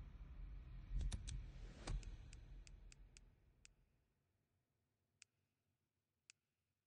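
Short soft clicks tick as menu items are selected.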